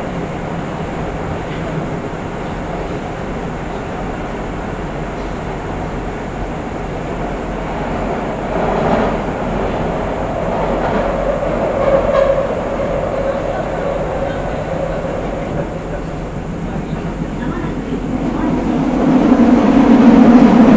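A stationary electric train hums steadily.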